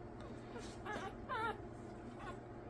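A newborn puppy squeaks and whimpers softly.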